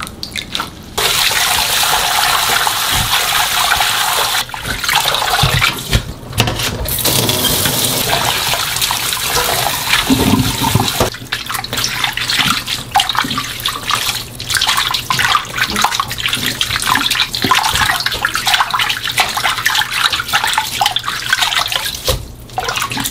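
Tap water runs into a steel bowl.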